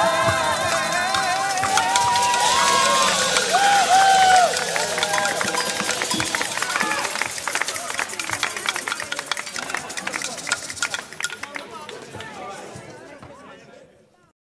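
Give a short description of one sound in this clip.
A large group of voices sings together and slowly fades away.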